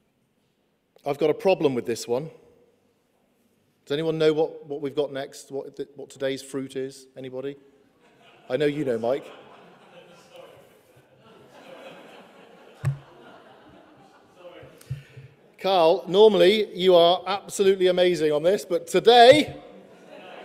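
A man speaks calmly into a microphone in short bursts, with pauses.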